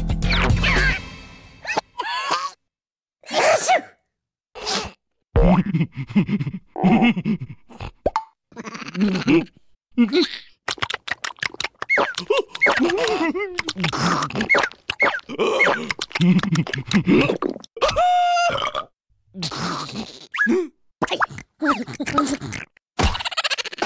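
Cartoon characters babble and shout in high, squeaky voices.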